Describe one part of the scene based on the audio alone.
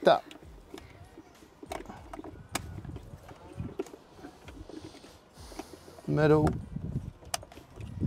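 A ratchet wrench clicks as it turns.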